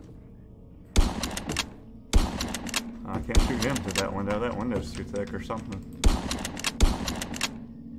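A shotgun fires several loud blasts.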